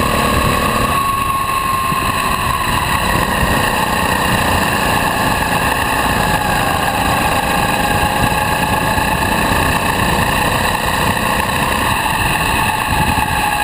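Wind buffets loudly.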